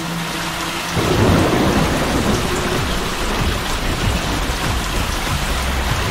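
Water rushes and splashes down a waterfall.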